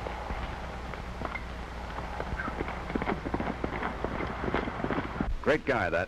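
Horse hooves thud on the ground.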